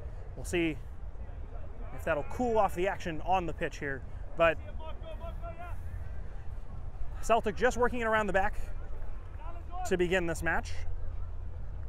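Young men shout to each other outdoors on an open field.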